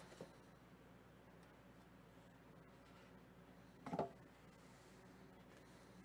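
A cardboard box lid slides and taps.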